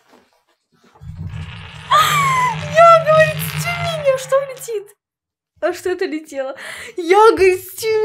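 A young woman talks excitedly close to a microphone.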